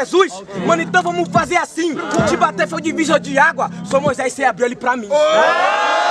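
A young man raps forcefully up close.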